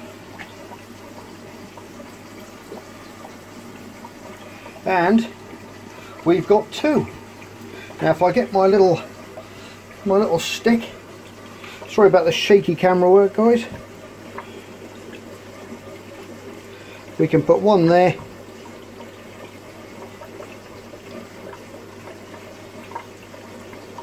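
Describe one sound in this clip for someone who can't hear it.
Air bubbles stream steadily through water.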